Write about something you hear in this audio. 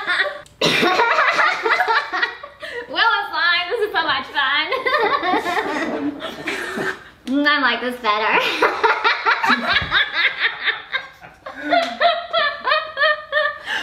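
A girl laughs.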